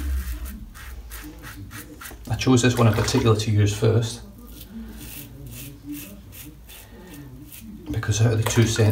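A razor scrapes across stubble in short strokes.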